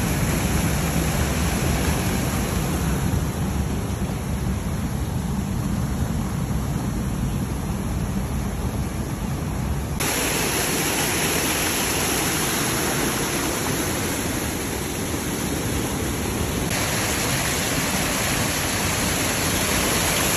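Foamy water rushes and roars over rocks outdoors.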